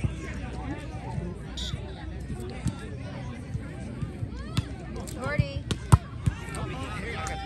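Young men shout and call out to each other outdoors during a volleyball game.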